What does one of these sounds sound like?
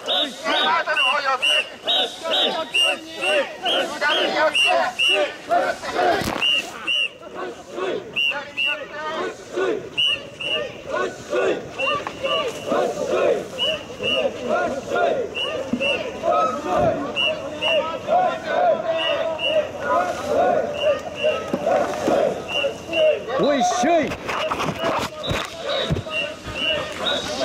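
A crowd of men chants loudly in a steady rhythm.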